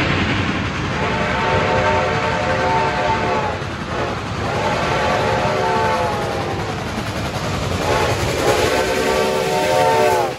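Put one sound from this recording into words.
A steam locomotive sounds its whistle in long blasts.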